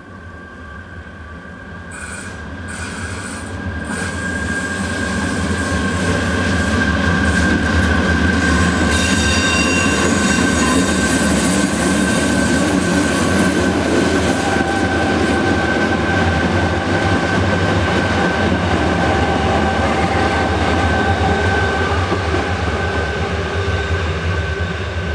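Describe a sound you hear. A train rumbles along the track, growing louder as it approaches.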